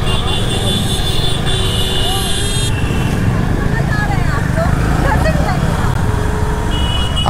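Wind rumbles and buffets against a microphone on a moving motorcycle.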